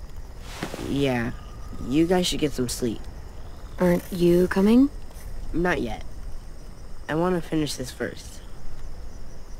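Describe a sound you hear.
A young boy answers softly.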